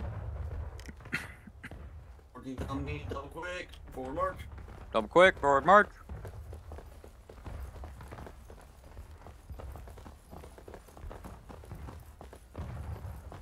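Footsteps crunch on dry dirt at a steady walking pace.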